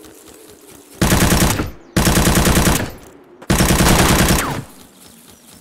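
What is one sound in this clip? Automatic gunfire rattles in bursts.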